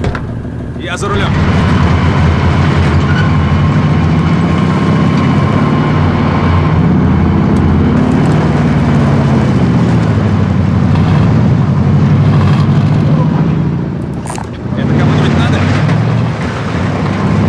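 A truck engine starts and rumbles loudly, revving up and down.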